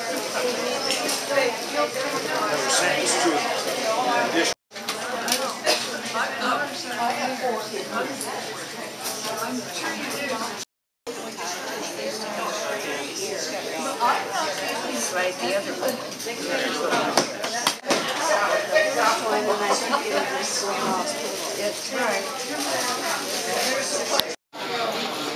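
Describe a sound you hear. Plastic bags rustle as items are sorted.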